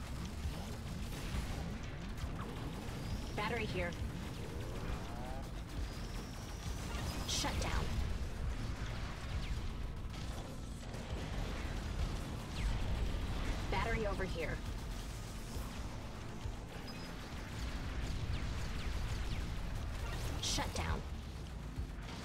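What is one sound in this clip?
Video game lasers zap and explosions boom rapidly.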